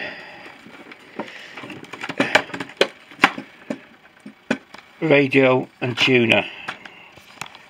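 Cables and plastic rustle and knock as a hand moves them about.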